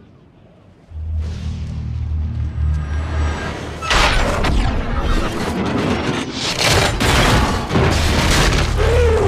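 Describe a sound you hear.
A loud explosion booms and rumbles on.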